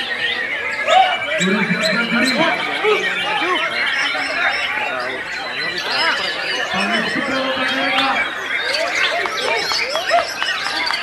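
A caged songbird sings loud, rapid, varied chirping phrases.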